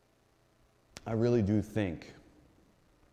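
A man speaks briefly through a microphone.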